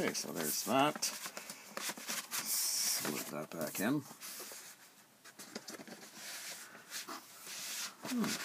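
A middle-aged man speaks calmly close by, pausing now and then.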